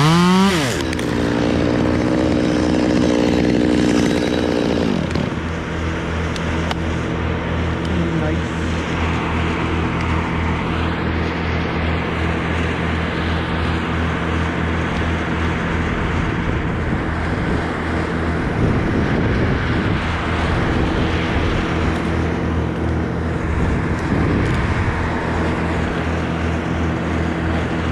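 A chainsaw engine revs up loudly, then drops back and runs at a steady idle close by.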